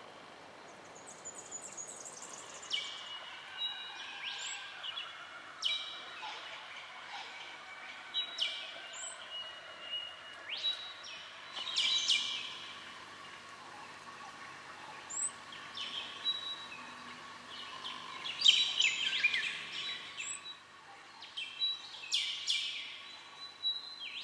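Birds chirp and whistle nearby in bright, quick calls.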